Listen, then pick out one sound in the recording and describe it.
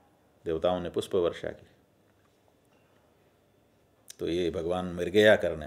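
A middle-aged man speaks calmly and close into a microphone, pausing between phrases.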